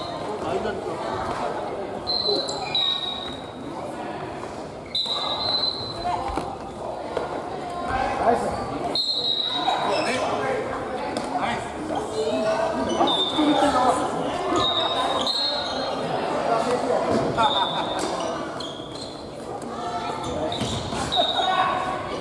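Many young people chatter and call out in a large echoing hall.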